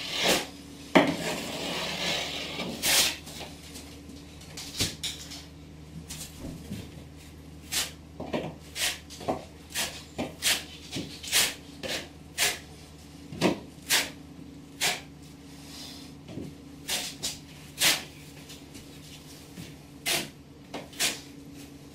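A trowel scrapes and taps against a wall in short strokes.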